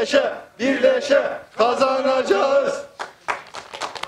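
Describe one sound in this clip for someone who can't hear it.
A crowd of men and women chants loudly together outdoors.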